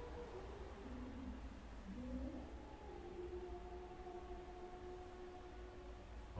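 A young man chants slowly and melodiously into a microphone.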